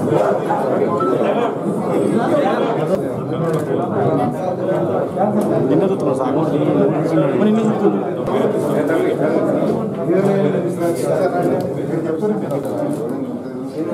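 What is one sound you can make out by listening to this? Several men talk at once, close by.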